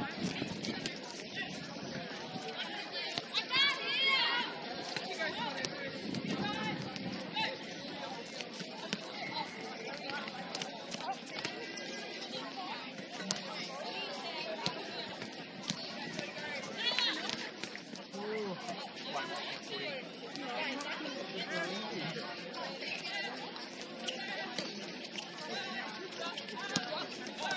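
Young women call out and chatter across an outdoor court.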